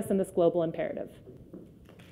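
A woman speaks to an audience through a microphone in a large hall.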